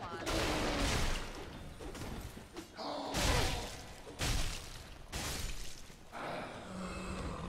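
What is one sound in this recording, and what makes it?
A young woman talks into a close microphone with animation.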